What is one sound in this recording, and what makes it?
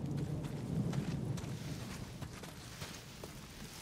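Leafy branches rustle as someone pushes through bushes.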